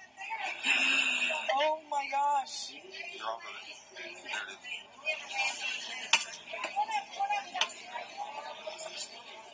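Men and women talk nearby.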